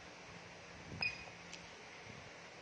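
Small buttons on a handheld device click as they are pressed.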